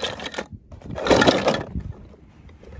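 Plastic toy cars clatter in a plastic bucket.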